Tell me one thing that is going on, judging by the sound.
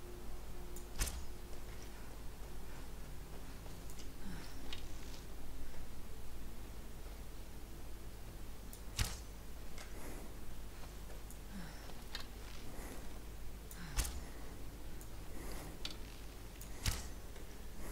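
A bowstring twangs sharply as an arrow is loosed.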